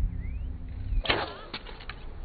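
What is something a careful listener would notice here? An arrow is loosed with a sharp twang.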